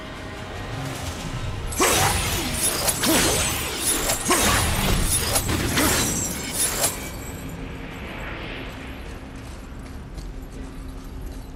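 A deep ringing hum drones steadily.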